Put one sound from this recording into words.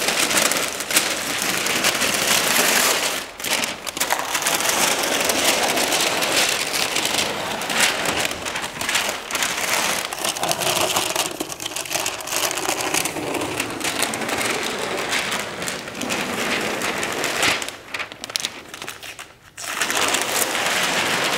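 Paper crinkles and rustles as it is pulled along a floor.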